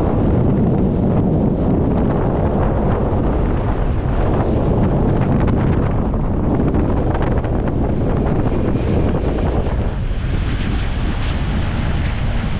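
Wind rumbles and buffets loudly past an open window of a moving vehicle.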